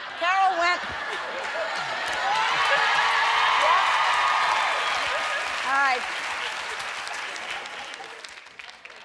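A studio audience laughs and cheers loudly.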